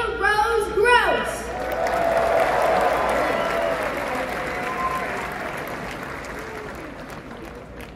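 A large crowd cheers and roars, then slowly fades.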